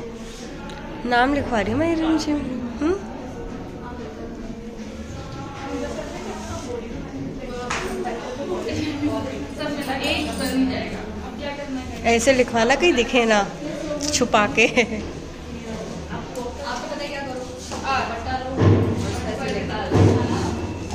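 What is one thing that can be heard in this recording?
Several women talk and chatter nearby.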